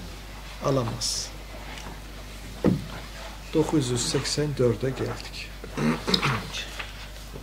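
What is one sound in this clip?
A man speaks calmly and steadily nearby.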